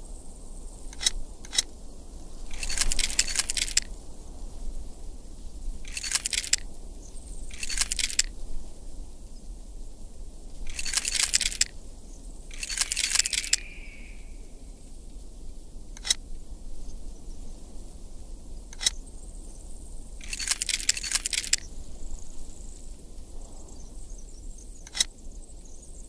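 Metal key parts click and scrape as they turn into place.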